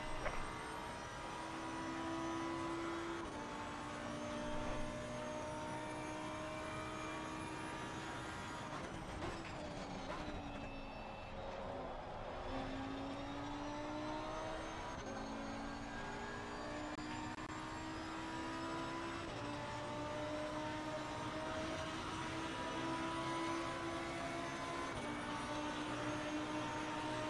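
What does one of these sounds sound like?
A race car engine roars at high revs, rising and dropping in pitch as it shifts gears.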